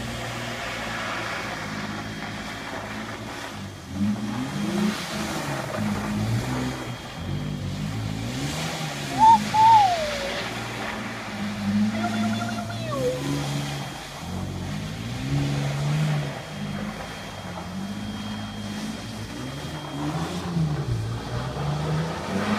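An SUV engine revs up and down repeatedly.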